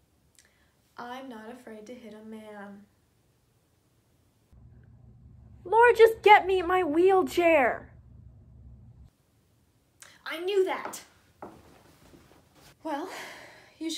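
A young woman talks calmly, close by in a room.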